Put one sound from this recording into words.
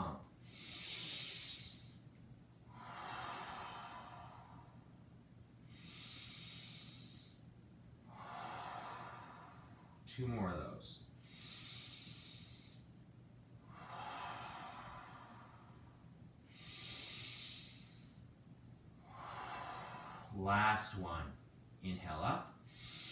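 A man breathes deeply in and out in a slow, steady rhythm.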